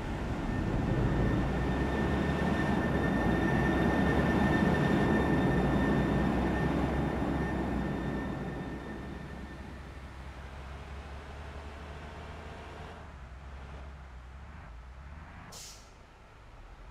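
A bus engine rumbles steadily as the bus drives and turns.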